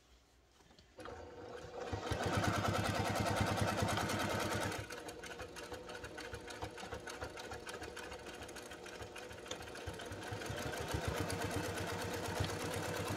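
A sewing machine runs, stitching with a rapid steady whirr.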